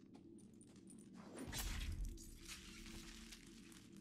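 A blade slides out of a sheath with a scrape.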